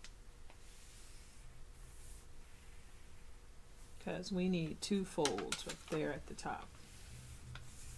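Paper rustles and slides as hands fold it.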